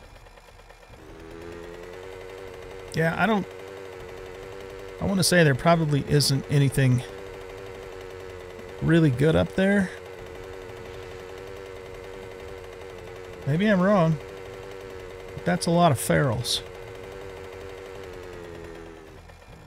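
A small motorbike engine hums steadily.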